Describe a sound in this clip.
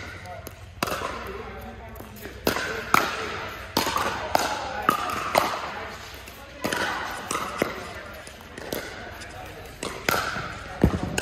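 Paddles pop sharply against a plastic ball in a large echoing hall.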